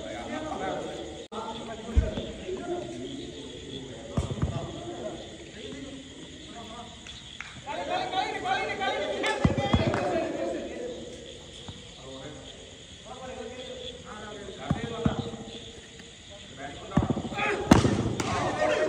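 Young men talk and call out across an echoing hall.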